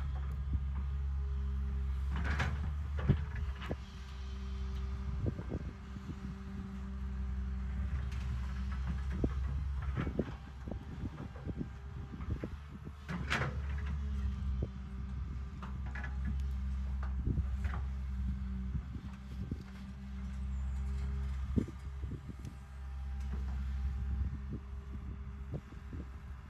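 An excavator engine rumbles steadily and revs up and down.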